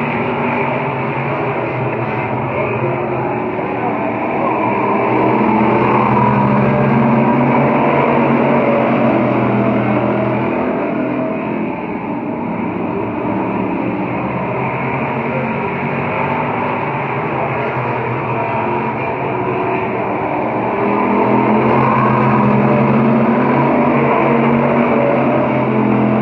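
Race car engines roar loudly, swelling and fading as a pack of cars speeds past.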